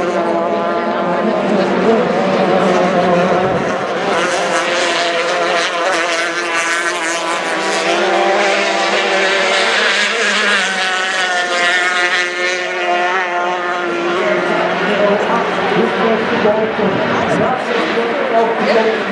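Several Formula 350 racing hydroplanes race by at full throttle, their outboard engines wailing.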